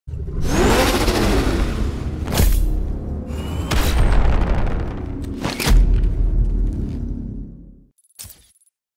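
A powerful engine rumbles and roars loudly.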